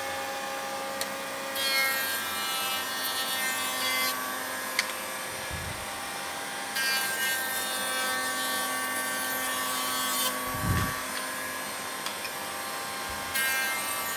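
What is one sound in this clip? Wooden strips clack against a metal table.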